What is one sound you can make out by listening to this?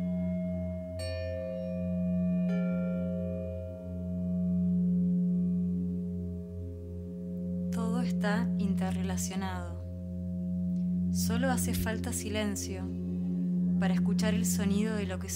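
Singing bowls are struck and ring out with long, humming tones.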